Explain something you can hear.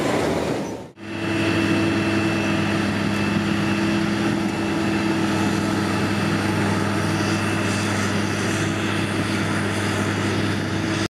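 A forage harvester engine roars steadily.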